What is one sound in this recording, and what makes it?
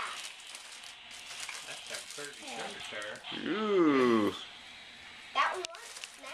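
Plastic wrapping and tissue paper rustle and crinkle.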